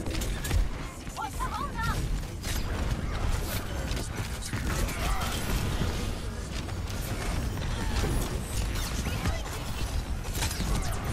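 A heavy metal ball rolls and thuds along the ground.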